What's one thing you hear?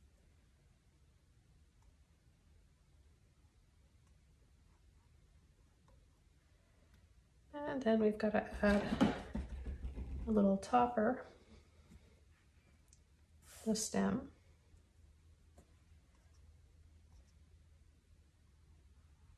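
A paintbrush dabs and strokes on canvas.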